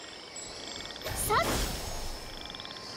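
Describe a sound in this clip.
A sword slash bursts with a loud magical whoosh.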